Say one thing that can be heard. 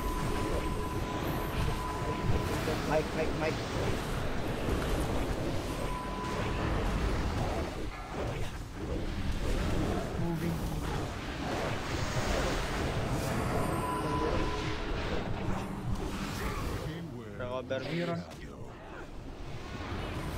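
Spell effects crash and whoosh in a battle.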